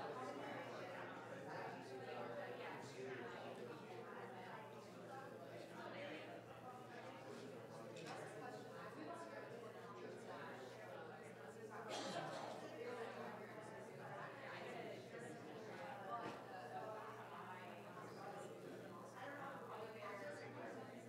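A crowd of men and women chatter in a large room.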